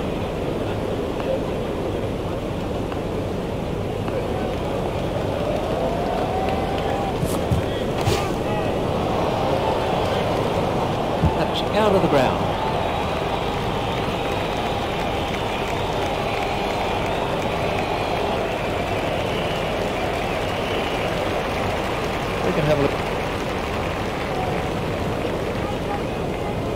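A large crowd murmurs and cheers steadily throughout.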